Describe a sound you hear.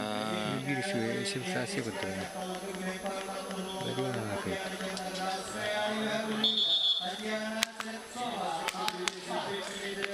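A crowd of spectators murmurs and chatters in a large open stadium.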